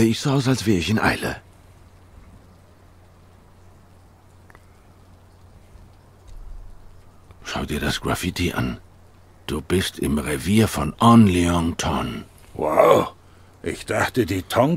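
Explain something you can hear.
A man talks close to a microphone, with pauses.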